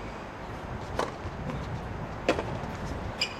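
A tennis ball is struck with a racket, echoing sharply outdoors.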